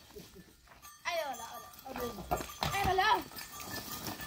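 Goats bleat loudly nearby.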